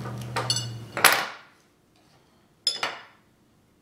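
Metal pliers clatter onto a wooden table.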